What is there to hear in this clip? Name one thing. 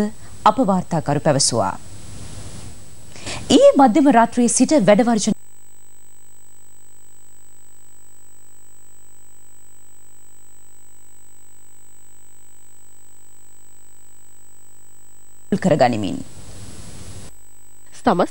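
A young woman reads out the news calmly and clearly through a microphone.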